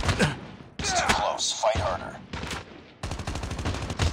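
Rifle shots fire in a rapid burst.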